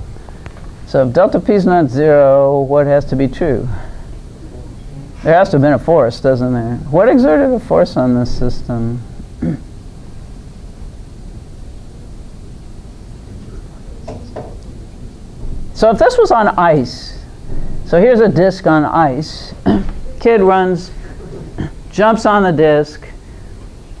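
An elderly woman speaks calmly, with long pauses.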